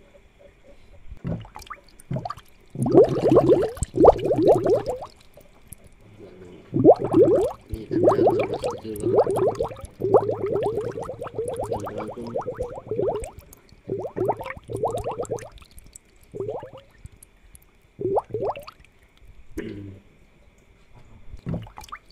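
Air bubbles gurgle steadily in a fish tank.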